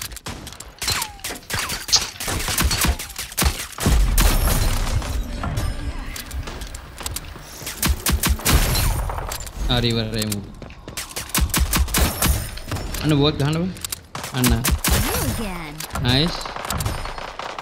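Pistol shots ring out in quick bursts.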